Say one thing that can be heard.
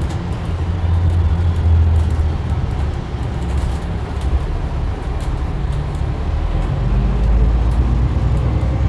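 A bus engine rumbles low and steady from inside the vehicle as it drives.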